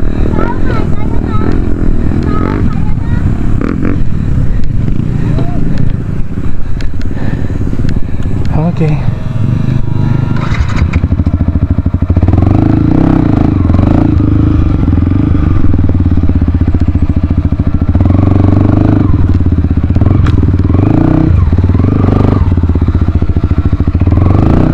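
A motorcycle engine idles and revs close by.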